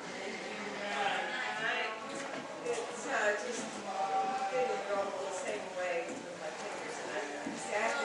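Footsteps cross a wooden floor.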